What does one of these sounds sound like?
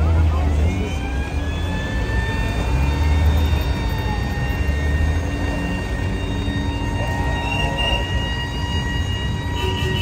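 A crowd chatters outdoors in the background.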